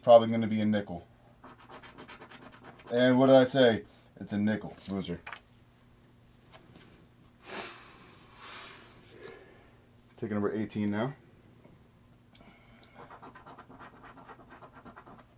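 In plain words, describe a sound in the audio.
A coin scratches rapidly across a paper card.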